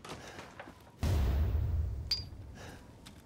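A wooden door bangs open with a low thud.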